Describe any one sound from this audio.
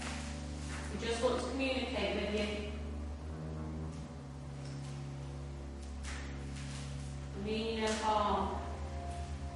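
Women speak quietly close by.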